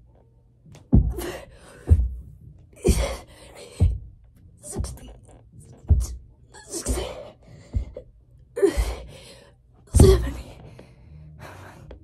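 A boy breathes hard and grunts with effort close by.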